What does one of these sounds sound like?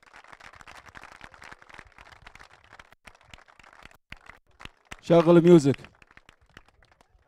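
Men clap their hands.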